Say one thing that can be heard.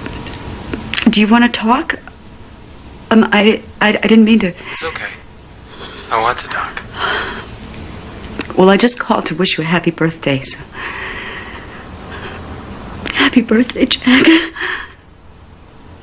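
A woman speaks into a phone in short, tense bursts with long pauses.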